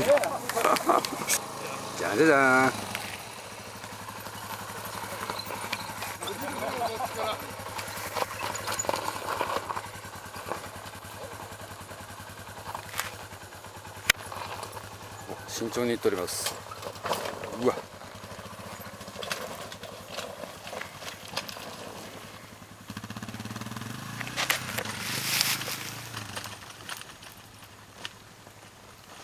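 A motorcycle engine idles and revs in short bursts nearby.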